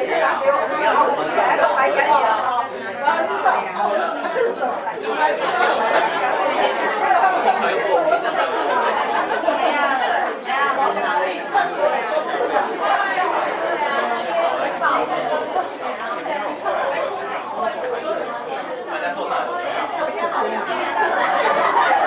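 A crowd of men and women chatters all around indoors.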